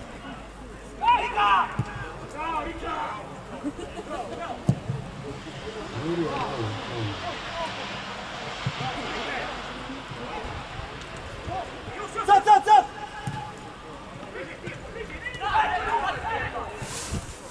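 Young men shout to each other from across an open outdoor field.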